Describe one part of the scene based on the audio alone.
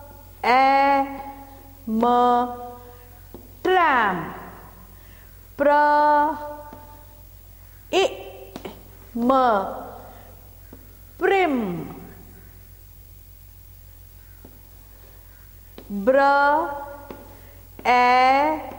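A woman speaks clearly and slowly, as if teaching.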